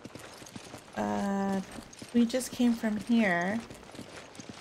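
A young woman speaks in a playful, sing-song voice close to a microphone.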